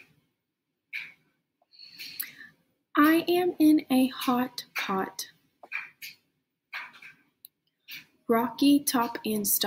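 A woman speaks clearly and slowly through a close microphone, reading out.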